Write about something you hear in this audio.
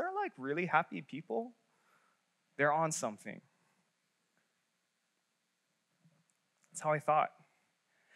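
A young man speaks calmly through a microphone, in bursts with pauses.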